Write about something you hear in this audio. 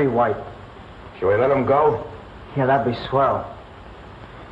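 A man speaks calmly in short phrases nearby.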